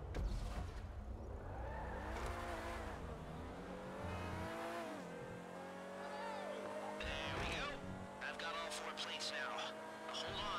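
A sports car engine revs up and down as it accelerates through gear changes.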